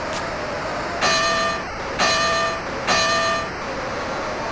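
A boxing bell rings three times.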